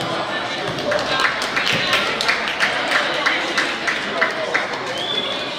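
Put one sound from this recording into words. A basketball bounces rapidly on the court.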